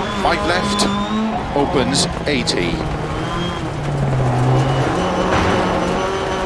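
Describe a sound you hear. A rally car engine roars and drops in pitch as the car slows.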